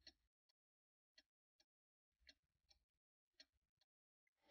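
A clock ticks faintly and irregularly.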